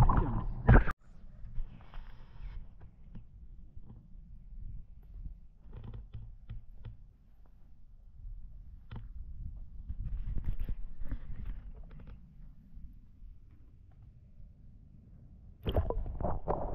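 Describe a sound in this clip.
Small ripples lap softly at a grassy bank.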